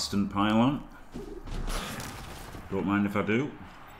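A body thuds to the ground in a hard tackle.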